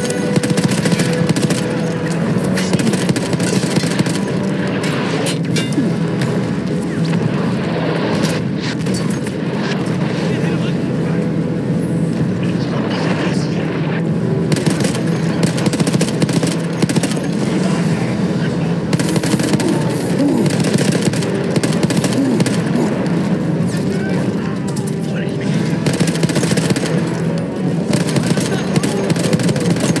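A heavy machine gun fires in long rapid bursts.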